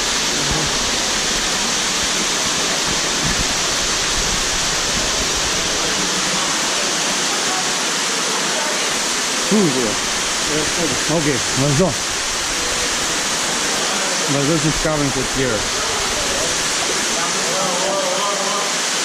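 Water rushes and splashes steadily over rocks in an echoing gorge.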